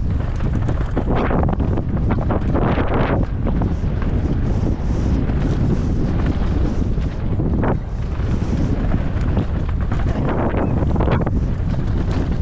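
Bike tyres crunch and skid over loose gravel and dirt.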